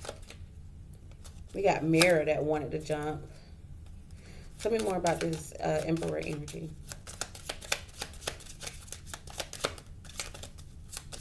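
Cards riffle and slap together as they are shuffled.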